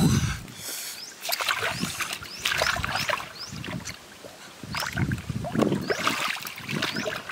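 Water splashes as a large fish thrashes in a shallow stream.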